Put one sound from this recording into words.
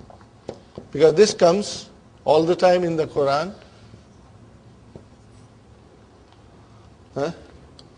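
An older man speaks in a calm, lecturing voice close by.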